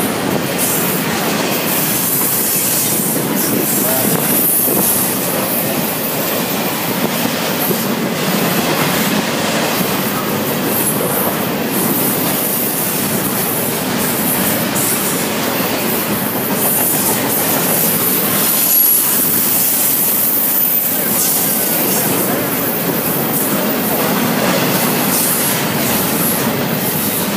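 A long freight train rumbles past close by, its wheels rattling and clacking on the rails.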